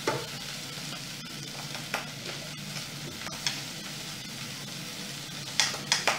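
A spoon scrapes chopped vegetables off a plate into a pot.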